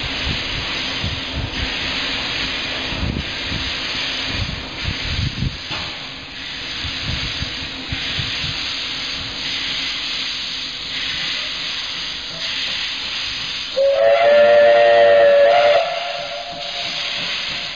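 Steam hisses loudly from a locomotive.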